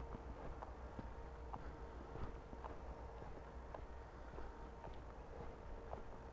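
Tyres roll and rattle over a bumpy dirt trail.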